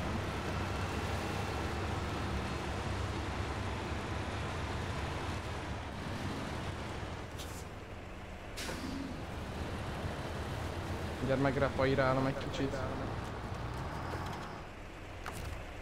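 A truck engine rumbles and labours steadily.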